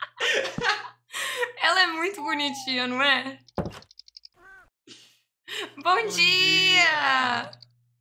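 A young woman speaks animatedly close to a microphone.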